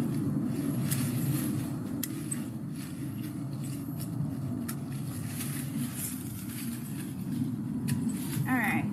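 Dry vines and twigs snap and crackle as they are pulled.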